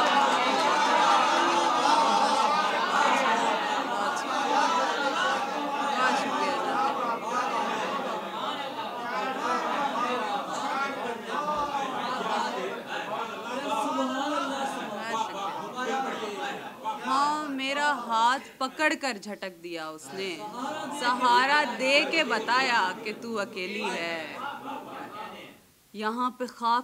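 A young woman recites with feeling into a microphone.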